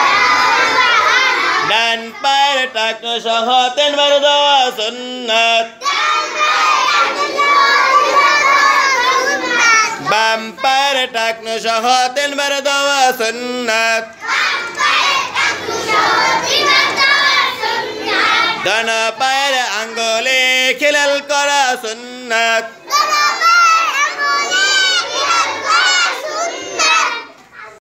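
A group of children chant loudly together in a room.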